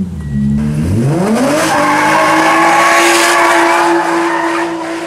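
A car engine growls and accelerates as the car pulls away.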